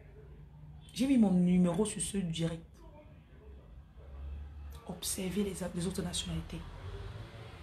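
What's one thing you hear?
A woman speaks with animation close to the microphone.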